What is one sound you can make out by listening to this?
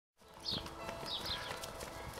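A child runs across grass outdoors.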